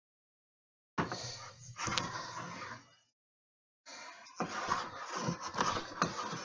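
A hand plane shaves wood in long rasping strokes.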